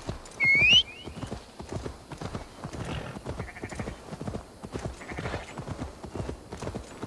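A horse's hooves thud as it gallops over grass.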